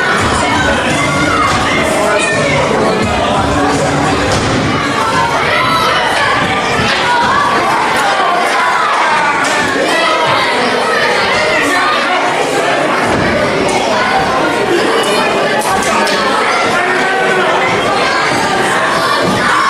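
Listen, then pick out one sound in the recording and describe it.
A crowd of men and women chatters and shouts throughout in an echoing hall.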